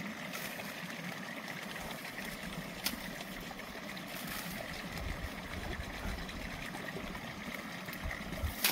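Stalks of grass rustle and swish.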